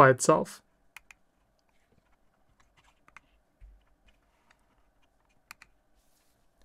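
Plastic parts click softly as hands fit them together.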